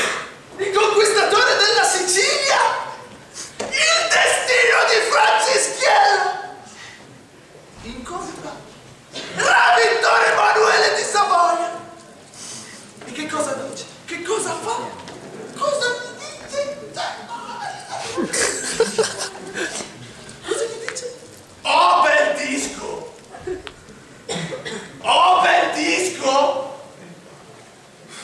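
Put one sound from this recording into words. A young man speaks loudly and with animation in an echoing hall.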